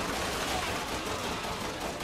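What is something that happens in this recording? Gunshots ring out in an echoing hall.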